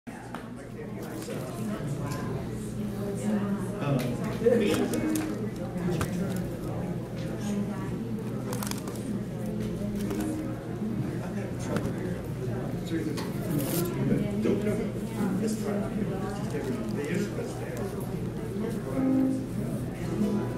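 Drums tap lightly in time.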